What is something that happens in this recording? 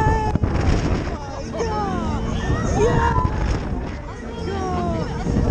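Wind rushes and buffets loudly past a fast-spinning fairground ride.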